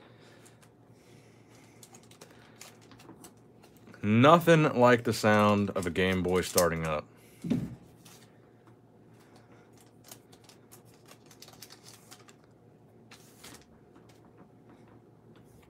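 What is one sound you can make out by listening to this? Foil card packs crinkle and rustle softly in hands close by.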